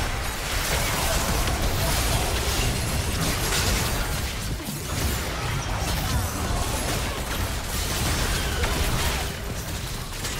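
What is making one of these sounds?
Spell effects crackle, whoosh and burst in a fast fight.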